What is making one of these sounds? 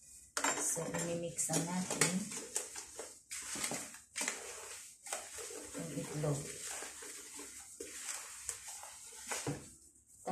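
Hands rub and mix flour in a bowl with a soft rustle.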